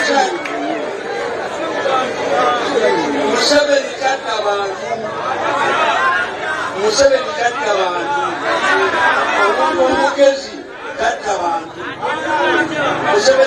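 A man speaks loudly and with passion into a microphone.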